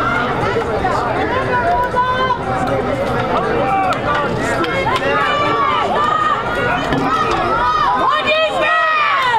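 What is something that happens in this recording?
Teenage boys call out to each other in the distance outdoors.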